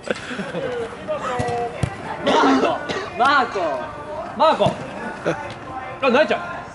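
Young men shout to each other across the pitch.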